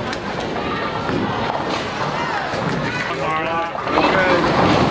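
A bowling ball rolls down a wooden lane.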